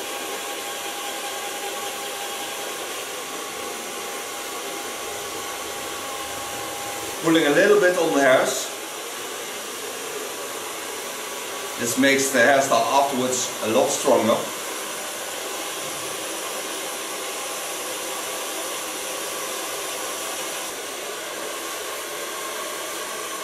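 A hair dryer blows steadily close by.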